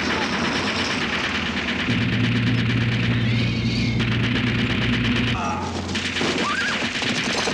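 Horses gallop heavily over sand.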